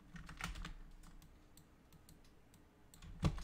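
Game menu clicks sound in quick, short ticks.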